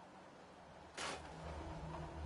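A wooden wall breaks apart with a short crash.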